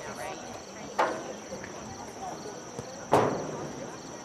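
A soccer ball is kicked with a sharp thump.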